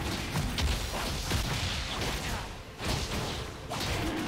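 Game creatures clash with sharp hits.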